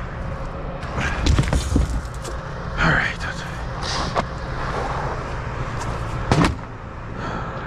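Heavy objects thump and scrape as they are shifted by hand nearby.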